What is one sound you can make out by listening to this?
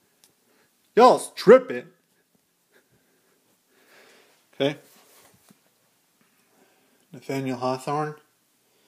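A man speaks close to a phone microphone in short, animated bursts.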